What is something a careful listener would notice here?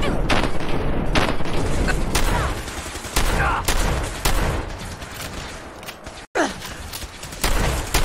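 Laser rifles fire in rapid bursts of sharp zaps.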